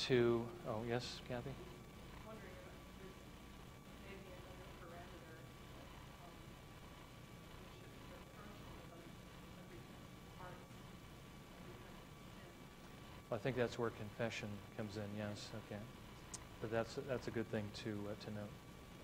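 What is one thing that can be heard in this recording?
A middle-aged man speaks calmly through a clip-on microphone, with long pauses.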